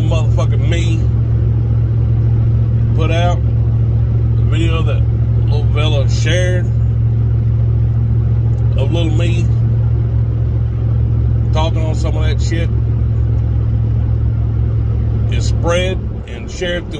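A car engine rumbles steadily.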